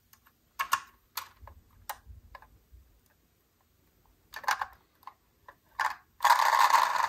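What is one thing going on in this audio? A toy car door clicks open and shut.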